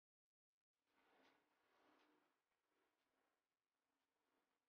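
A fork scrapes softly across a plate.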